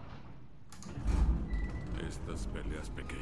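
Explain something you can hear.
A lift door rumbles and slides open.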